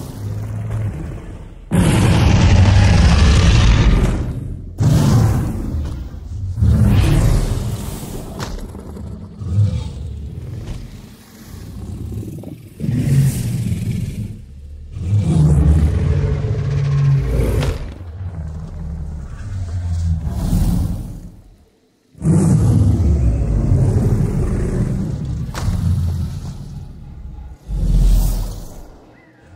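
Heavy footsteps thud on the ground.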